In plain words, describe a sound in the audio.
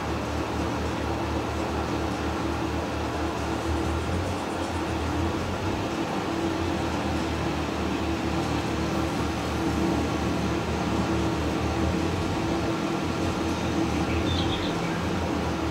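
A tractor engine hums and rumbles steadily.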